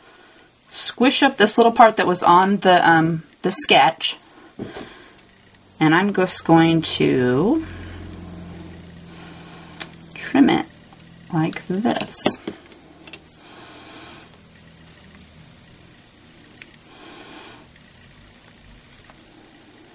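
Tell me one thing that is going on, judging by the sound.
Satin ribbon rustles softly as fingers fold it.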